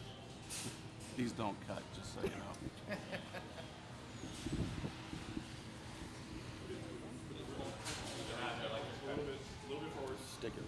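A man speaks into a microphone to a gathered group.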